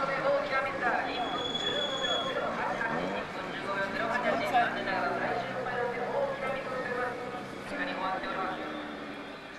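A racing car engine roars loudly as the car passes, its pitch rising and falling through the gears.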